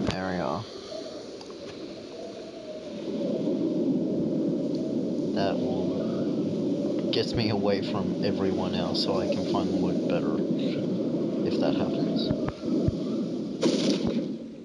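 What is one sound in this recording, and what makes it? Wind rushes loudly past a skydiver in free fall.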